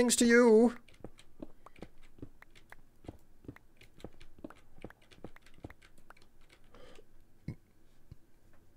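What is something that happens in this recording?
Short, quick knocks of blocks being mined tap along.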